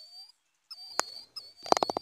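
A golf club taps a ball with a short click.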